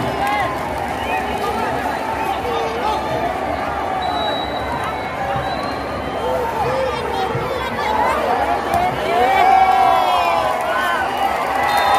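Nearby spectators shout and cheer, growing louder near the end.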